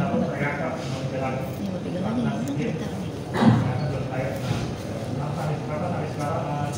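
A middle-aged man speaks calmly into a handheld microphone.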